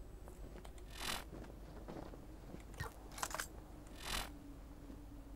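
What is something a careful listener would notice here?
A game menu makes short whooshing sounds as it opens and closes.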